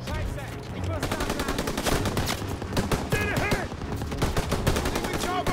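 Rifle shots crack in rapid bursts nearby.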